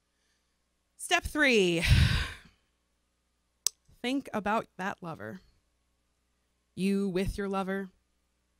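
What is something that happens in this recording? A woman sings emotionally into a microphone, close and clear.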